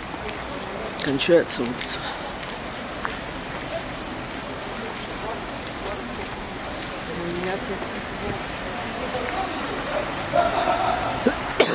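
City traffic hums steadily along a street outdoors.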